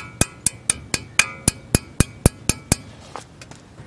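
Metal pliers click sharply against a brake part in quick succession.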